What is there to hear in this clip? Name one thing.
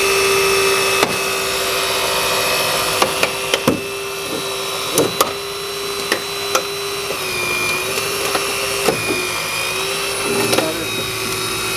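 Metal creaks, cracks and pops as a car's body is torn apart.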